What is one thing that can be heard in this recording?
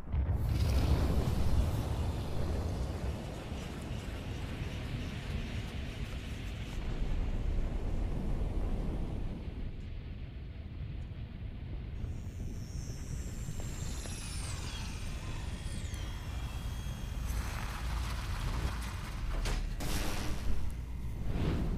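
A deep rumble roars steadily.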